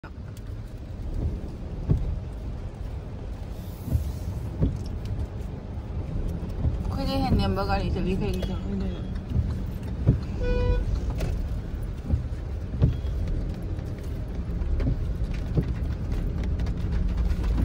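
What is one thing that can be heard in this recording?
A car engine rumbles low and steadily.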